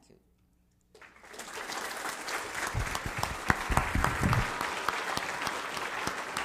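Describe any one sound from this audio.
An audience applauds loudly in a large room.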